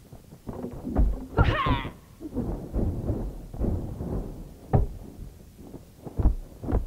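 Fists and kicks land with heavy thuds in a fight.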